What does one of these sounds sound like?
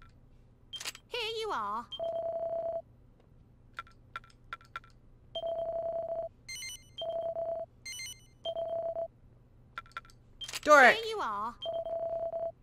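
A cartoonish character voice gives a short cheerful exclamation.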